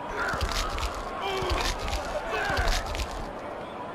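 Heavy body blows thud in a video game wrestling fight.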